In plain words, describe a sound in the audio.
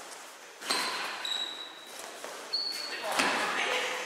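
Sports shoes squeak sharply on a wooden floor.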